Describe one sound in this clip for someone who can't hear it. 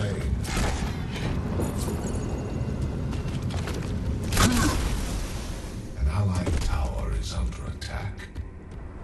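Blades swing and strike with sharp thuds during a fight.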